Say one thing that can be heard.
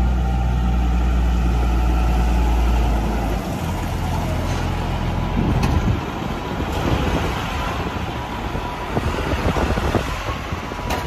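A tractor engine rumbles steadily as the tractor drives closer.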